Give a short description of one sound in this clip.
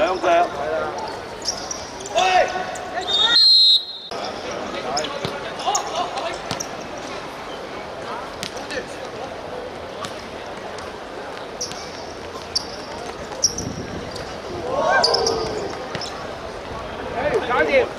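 A futsal ball is kicked on a hard court.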